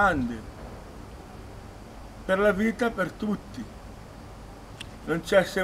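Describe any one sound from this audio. A middle-aged man speaks with animation close by, in a large open space with a faint echo.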